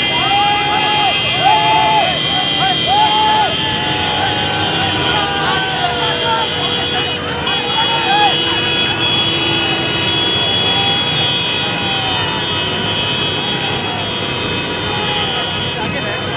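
A crowd of men chants and shouts outdoors.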